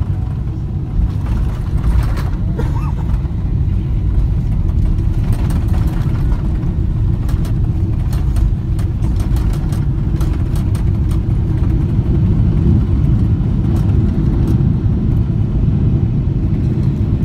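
An airliner's wheels rumble and thump on the runway.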